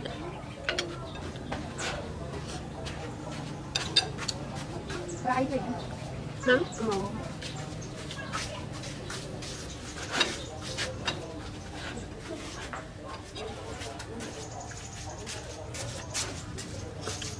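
A young woman eats noisily, slurping and chewing.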